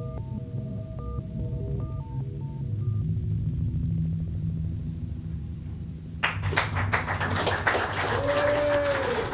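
A synthesizer plays a deep pulsing bass.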